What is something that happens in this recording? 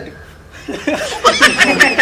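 A teenage boy laughs.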